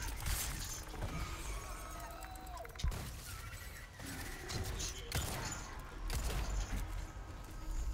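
A huge creature growls and roars.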